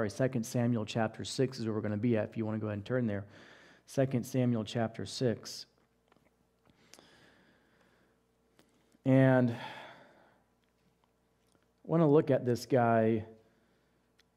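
A man speaks calmly into a headset microphone, with pauses.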